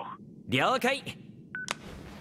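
A young man speaks briefly on a phone.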